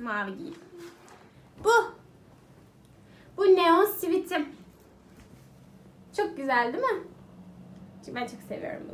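A young woman talks with animation, close by.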